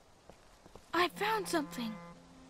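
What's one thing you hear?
A boy calls out.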